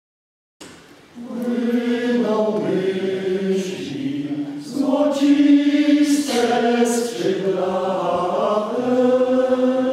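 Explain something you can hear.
A men's choir sings in harmony.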